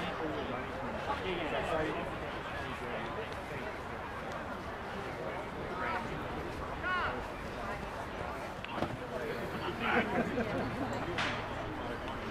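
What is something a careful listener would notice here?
Footballers call out to each other across an open field, heard from a distance.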